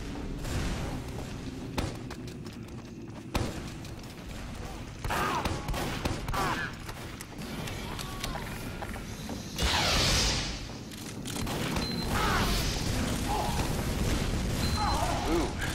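Explosions boom loudly, one after another.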